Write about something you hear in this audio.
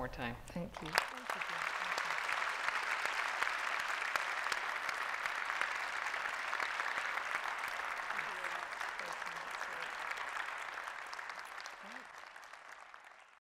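Hands clap in steady applause that slowly fades.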